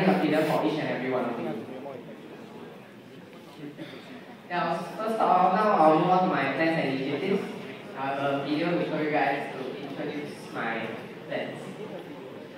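A boy speaks with animation into a microphone, heard through loudspeakers in a large hall.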